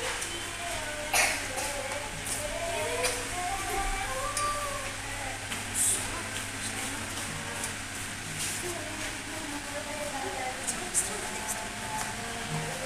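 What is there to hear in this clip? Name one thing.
Electric fans whir and hum steadily.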